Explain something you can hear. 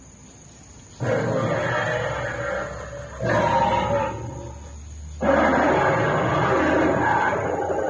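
A dinosaur model roars loudly through a loudspeaker, in repeated bursts.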